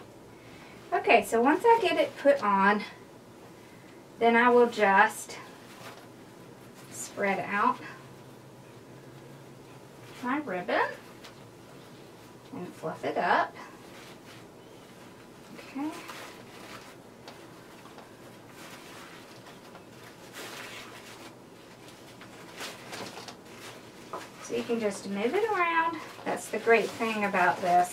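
A woman talks calmly close by, in short bursts.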